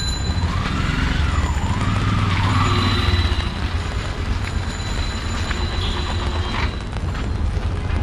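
An auto-rickshaw engine putters nearby.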